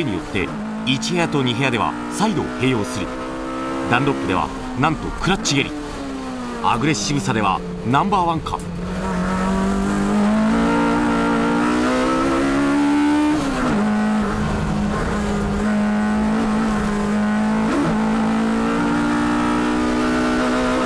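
A race car engine roars loudly from inside the cabin, rising and dropping in pitch with gear changes.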